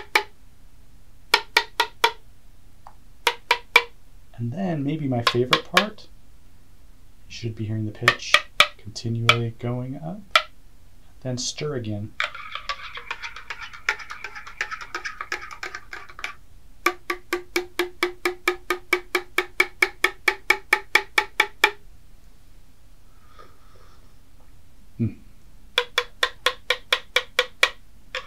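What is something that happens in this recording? A spoon clinks rapidly against a mug.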